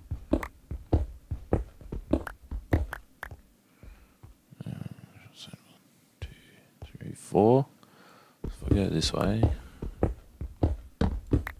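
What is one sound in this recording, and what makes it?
A pickaxe chips rapidly at stone in quick, repeated taps.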